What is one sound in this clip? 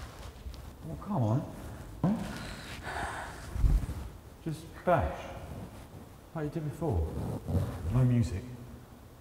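A man speaks quietly and tensely up close.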